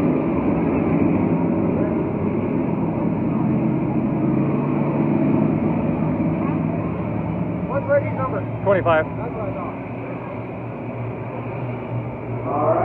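Race car engines roar steadily around a track outdoors.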